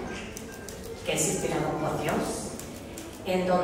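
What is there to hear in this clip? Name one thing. An elderly woman speaks into a microphone over loudspeakers.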